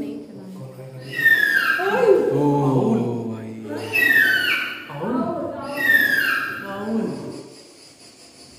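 An owl gives loud, falling screeching calls nearby.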